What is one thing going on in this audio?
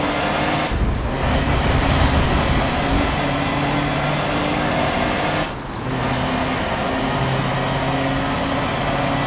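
A truck engine roars loudly, with the pitch rising and dropping as gears shift.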